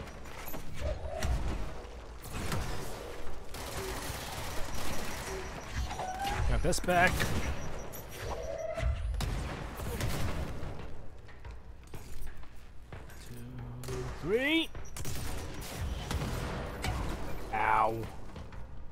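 Explosions boom and debris crashes.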